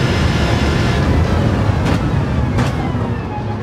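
A racing car engine drops in pitch with gear shifts as it brakes.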